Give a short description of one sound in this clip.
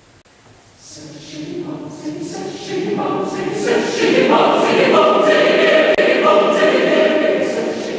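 A mixed choir of men and women sings, softly at first and then swelling loud in an echoing hall.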